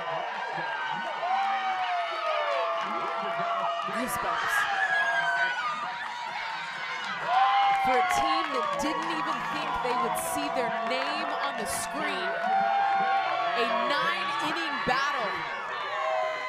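Young women shout and cheer excitedly.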